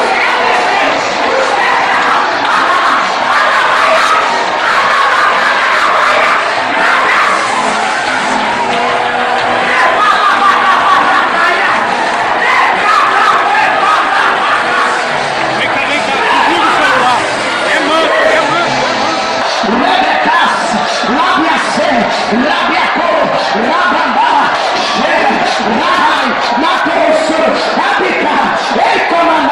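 A man preaches loudly into a microphone over loudspeakers in a large echoing hall.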